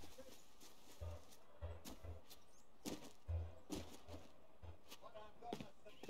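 Footsteps thud steadily on grass and rock.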